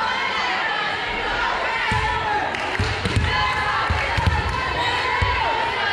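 A volleyball bounces on the hardwood floor.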